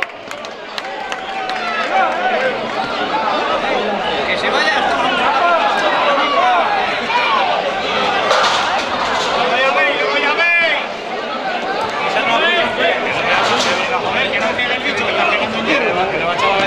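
A crowd of men shout and call out loudly outdoors.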